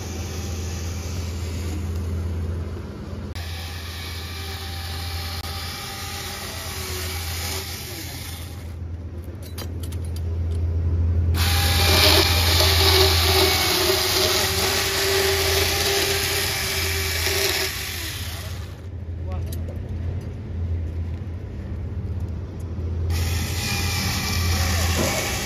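A chainsaw motor runs with a loud, steady hum.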